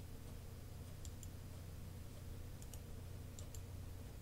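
A computer mouse clicks a few times, close by.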